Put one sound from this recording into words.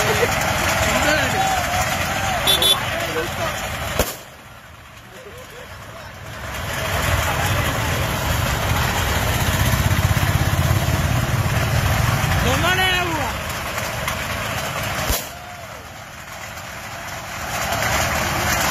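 Tin cans rattle and clatter as they are dragged along a road.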